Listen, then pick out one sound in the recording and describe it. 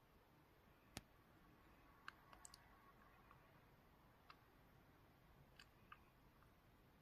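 A game console gives short soft menu clicks.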